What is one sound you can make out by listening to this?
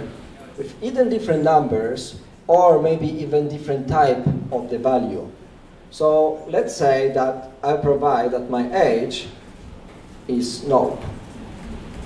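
A young man speaks calmly into a microphone.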